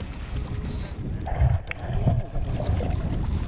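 Water gurgles and rumbles underwater.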